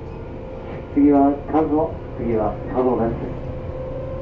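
A train horn sounds in a few short blasts.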